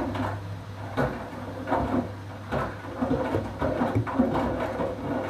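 Water and wet laundry slosh and splash inside a washing machine drum.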